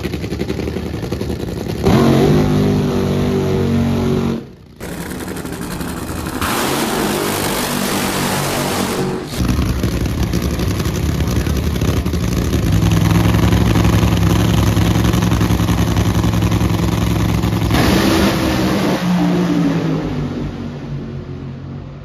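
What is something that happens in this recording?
A drag racing engine roars loudly and crackles.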